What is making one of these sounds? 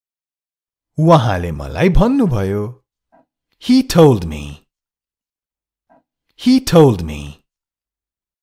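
A man reads out short phrases clearly and slowly, close to a microphone.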